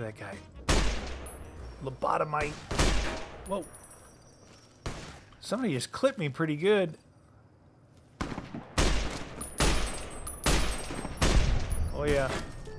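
A rifle fires loud, booming shots again and again.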